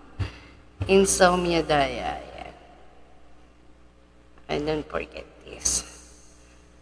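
A woman speaks casually into a close microphone.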